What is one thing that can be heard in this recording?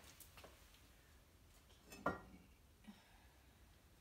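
A ceramic kiln shelf clunks as it is set down.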